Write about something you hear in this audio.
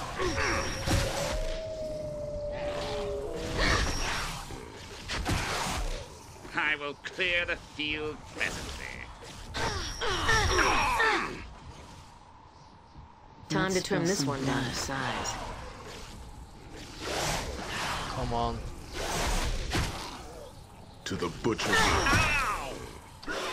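Magic spells crackle and burst with icy whooshes.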